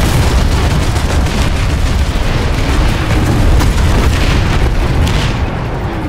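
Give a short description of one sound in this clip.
A vehicle engine rumbles loudly.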